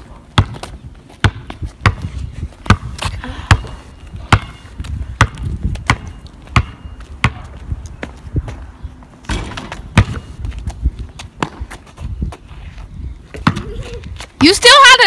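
A basketball bounces on asphalt outdoors.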